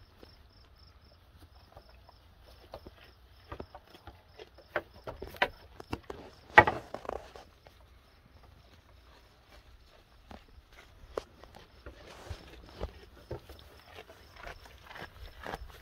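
Young goats munch and rustle leafy greens close by.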